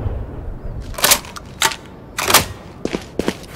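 Shotgun shells click into a gun as it is reloaded.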